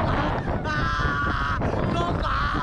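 A young man screams loudly up close.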